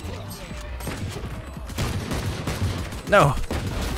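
Gunshots crack from a game.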